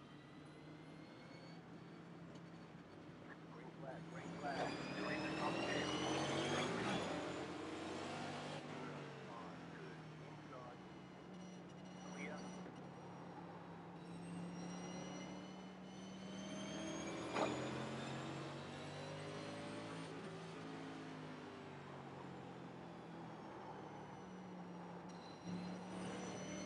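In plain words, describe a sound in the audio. A race car engine drones steadily and revs up as the car speeds away.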